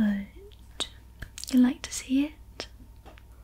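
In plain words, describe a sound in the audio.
A young woman speaks softly, close to a microphone.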